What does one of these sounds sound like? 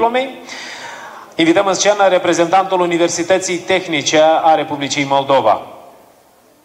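A middle-aged man speaks with animation into a microphone, heard through loudspeakers in a large echoing hall.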